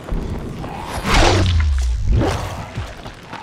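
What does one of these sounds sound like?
A heavy blow lands with a loud whoosh and thud.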